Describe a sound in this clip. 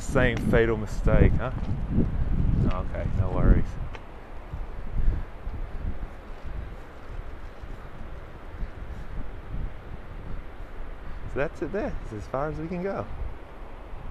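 A man speaks calmly and clearly close by, outdoors.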